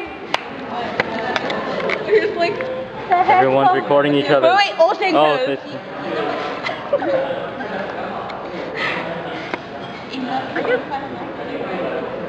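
Young women chatter and laugh close by.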